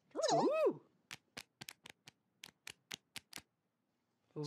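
Small feet patter quickly across a floor.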